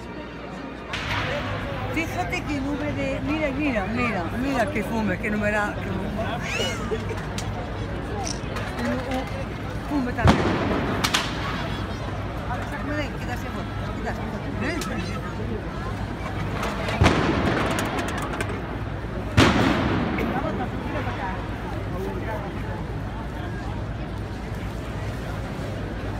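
Sparks and small firecrackers crackle.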